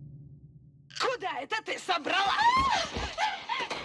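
A woman speaks menacingly up close.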